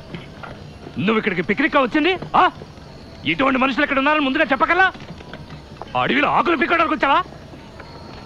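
A middle-aged man speaks angrily and loudly, close by.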